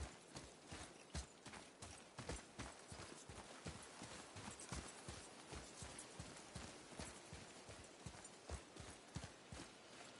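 Heavy footsteps thud quickly on a dirt path.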